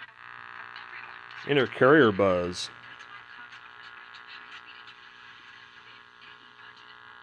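An old television plays a cartoon's sound through a small, tinny speaker.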